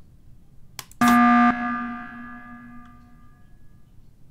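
A loud game alarm rings out and fades.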